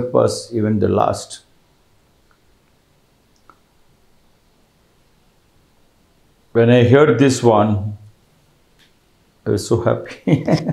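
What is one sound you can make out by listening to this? A middle-aged man speaks calmly and close to a microphone, with pauses.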